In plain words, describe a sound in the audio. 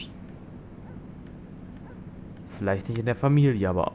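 A lamp switch clicks off.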